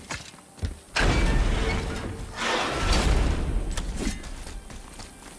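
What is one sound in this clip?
A heavy metal gate grinds and rattles as it is lifted.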